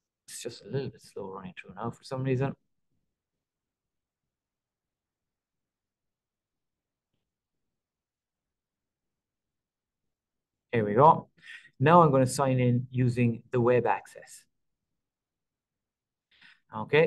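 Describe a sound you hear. A middle-aged man speaks calmly through a microphone, heard as over an online call.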